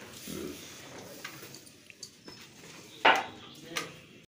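Flower garlands rustle as they are handled.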